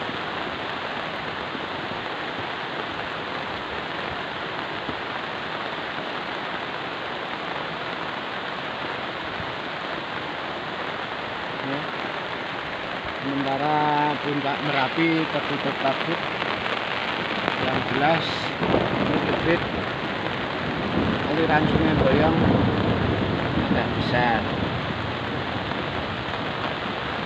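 A muddy flood river rushes and roars steadily.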